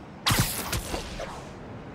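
Feet thump onto a rooftop ledge.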